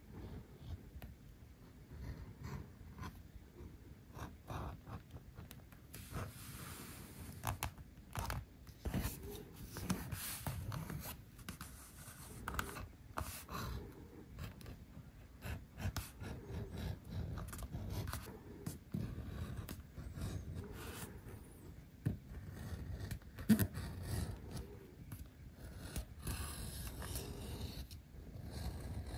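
A metal tool scrapes and clicks along the edge of leather.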